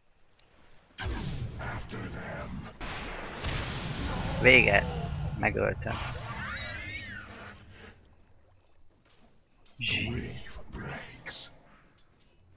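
Magic spell effects burst and whoosh during a fight.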